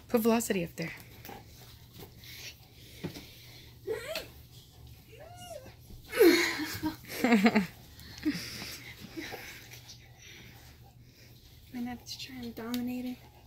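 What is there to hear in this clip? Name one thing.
Dogs growl and whine as they play close by.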